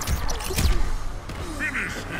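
Heavy blows thud and crash in a video game fight.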